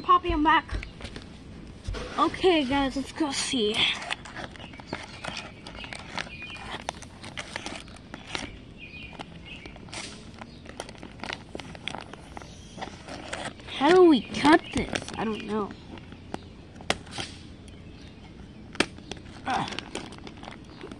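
Plastic wrapping crinkles and rustles as a hand moves it.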